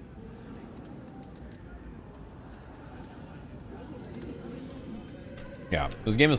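Arcade buttons click rapidly under quick fingers.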